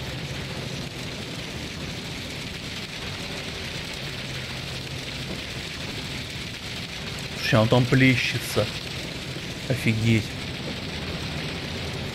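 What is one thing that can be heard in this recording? A truck engine idles nearby with a low steady rumble.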